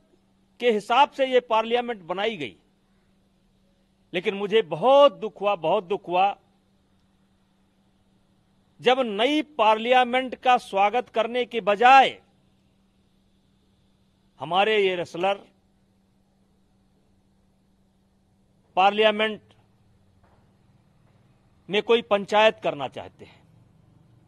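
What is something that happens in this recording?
A middle-aged man speaks firmly into a close microphone, in short bursts with pauses.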